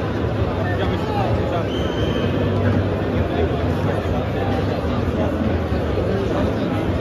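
A large stadium crowd chants and cheers loudly, echoing around the stands.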